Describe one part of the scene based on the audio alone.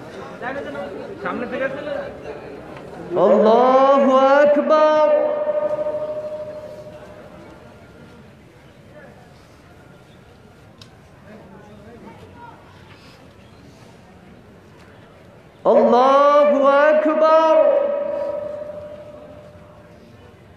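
A man chants a long call loudly through a loudspeaker outdoors, with echo.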